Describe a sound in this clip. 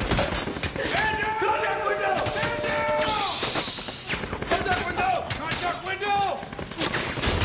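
A young man exclaims in shock close to a microphone.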